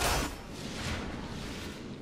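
A burst of crackling energy whooshes up close.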